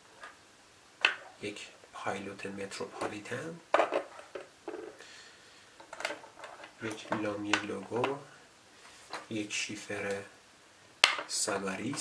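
Pens are set down one by one on a wooden table with light knocks.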